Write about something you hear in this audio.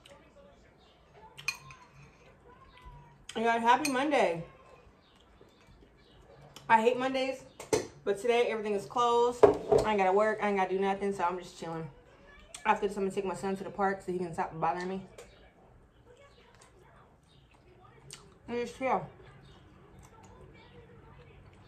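A woman chews food noisily close to a microphone.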